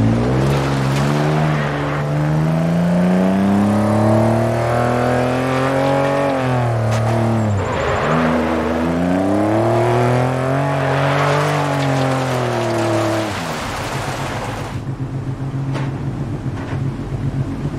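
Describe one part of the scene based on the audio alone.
Gravel sprays and crunches under skidding tyres.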